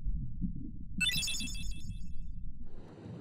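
A bright chime rings out with a shimmering ring.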